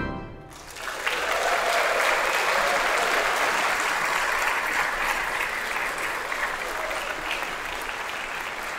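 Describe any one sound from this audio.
A choir rises to its feet with a rustling and shuffling that echoes in a large hall.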